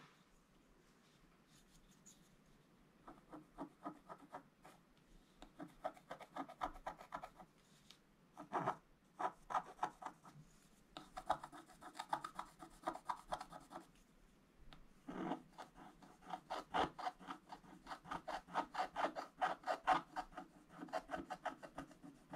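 A thin paintbrush dabs and scratches lightly on paper.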